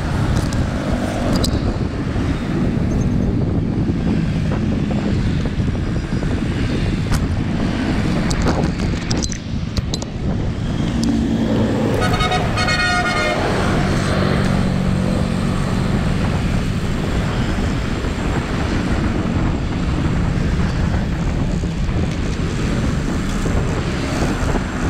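Wind buffets a microphone loudly outdoors.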